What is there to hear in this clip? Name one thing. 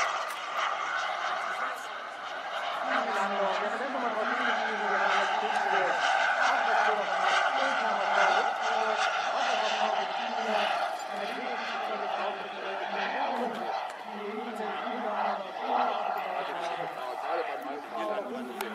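A model jet engine whines steadily overhead.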